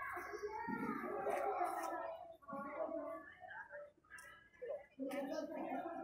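Young women talk with animation close by, outdoors.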